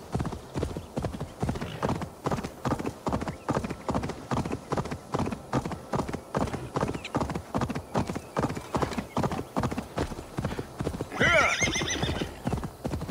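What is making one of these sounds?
Horse hooves thud steadily on soft ground at a trot.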